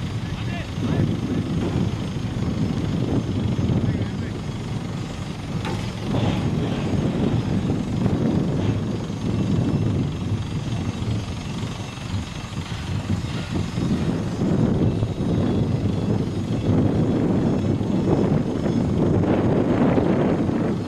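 Wind blows steadily across an open field outdoors.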